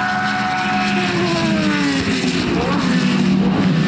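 A racing car passes close by with a sharp drop in engine pitch.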